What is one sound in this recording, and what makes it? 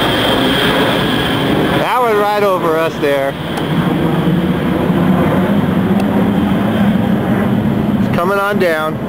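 A jet airliner roars steadily overhead.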